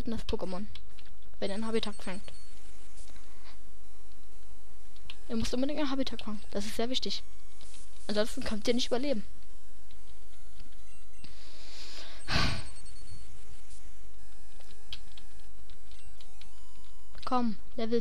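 Chiptune sound effects beep and crackle.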